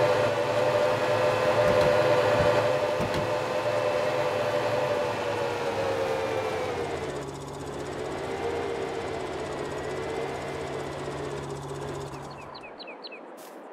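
A van engine hums and idles.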